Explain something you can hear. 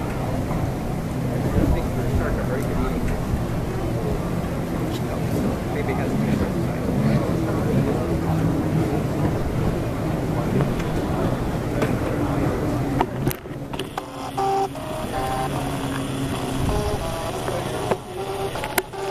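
A crowd of adults and children chatters and calls out in the distance outdoors.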